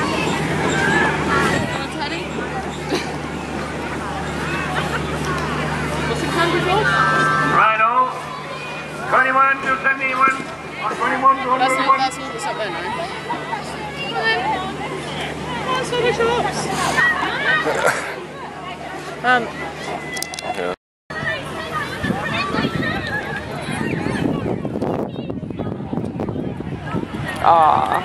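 A crowd of children and adults chatters and shouts outdoors.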